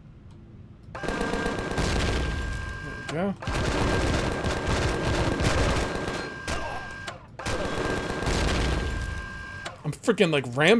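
A rotary gun fires rapid, roaring bursts of shots.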